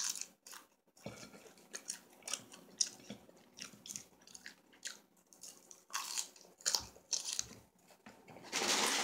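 A woman crunches food with her mouth close by.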